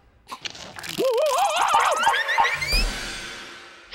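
A cartoon creature yelps in a high, rising squeal.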